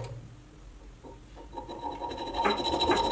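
A hacksaw rasps back and forth through metal tubing.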